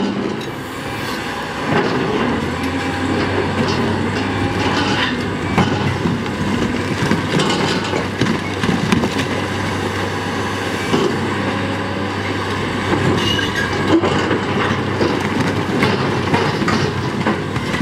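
Rocks tumble and clatter down a slope.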